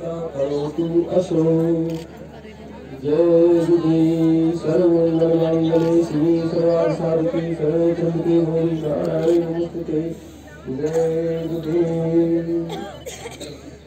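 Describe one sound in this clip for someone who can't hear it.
A man sings steadily into a microphone, heard through loudspeakers.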